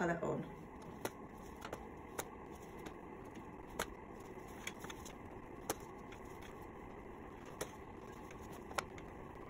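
A comb snaps and clicks through hair.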